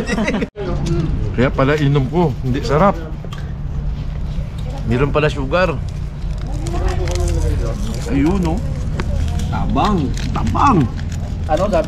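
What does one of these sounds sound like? A middle-aged man talks casually up close.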